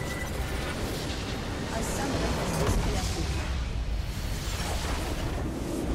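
A structure explodes with a loud crumbling blast.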